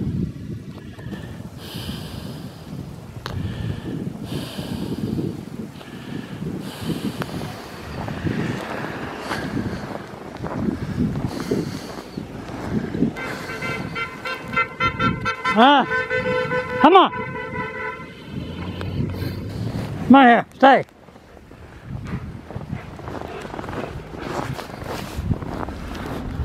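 A dog bounds through deep snow with soft crunching steps.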